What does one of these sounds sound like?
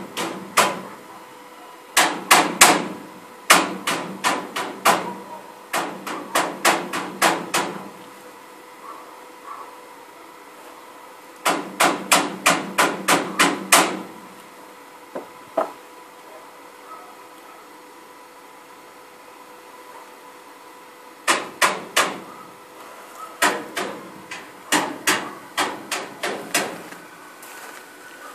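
A stick welder crackles and sputters in short bursts while tacking steel rebar.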